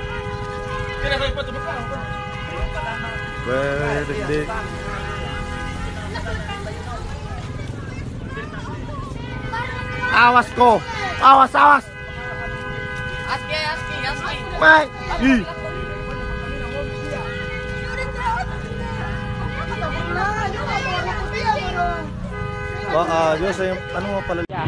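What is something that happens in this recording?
A man talks loudly and excitedly nearby.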